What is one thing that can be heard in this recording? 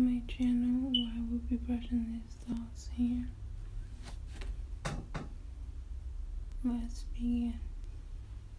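A woman speaks softly and close by.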